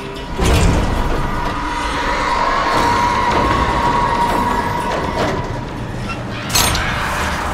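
A cable car rattles and creaks along its cable.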